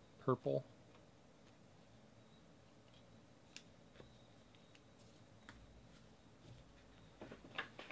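Cards rustle and click as hands shuffle through them.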